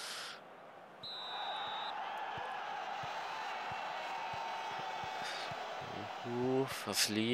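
A stadium crowd murmurs steadily.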